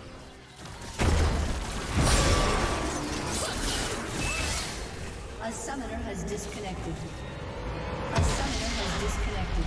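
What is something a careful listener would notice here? Game spells crackle and blast in a fight.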